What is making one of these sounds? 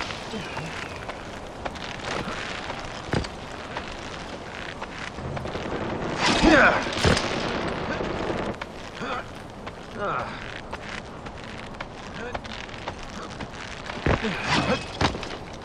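A rope creaks and rubs against rock as someone climbs.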